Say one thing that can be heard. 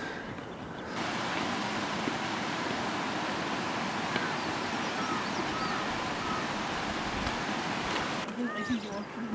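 A stream rushes steadily nearby.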